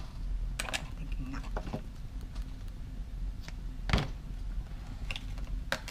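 Scissors are set down on a table with a light clatter.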